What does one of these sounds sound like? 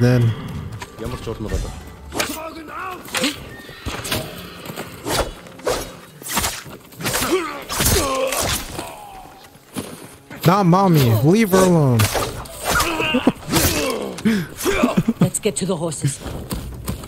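Swords clash and strike in quick bursts.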